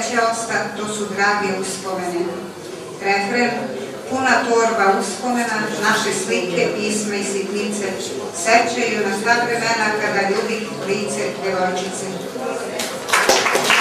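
A middle-aged woman reads aloud steadily into a microphone.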